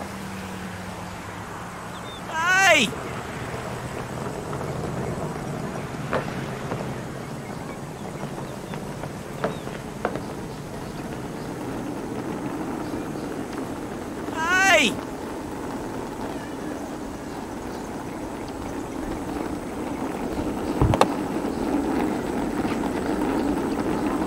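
A cart rolls along on small rattling wheels.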